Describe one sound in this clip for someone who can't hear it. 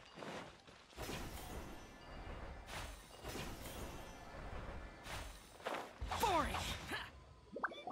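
A bright magical chime shimmers and rings.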